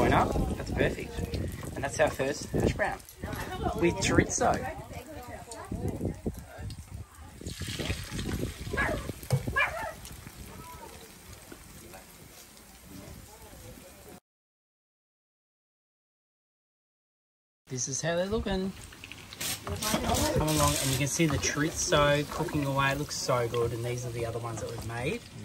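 Food sizzles in hot oil in a frying pan.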